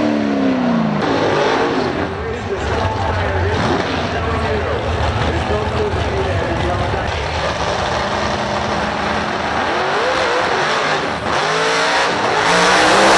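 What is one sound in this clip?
Powerful engines rumble and rev at the start line.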